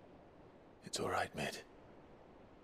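A young man speaks softly.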